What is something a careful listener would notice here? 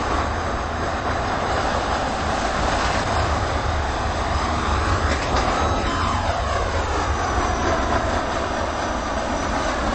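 A train rumbles past on the tracks with a steady roar.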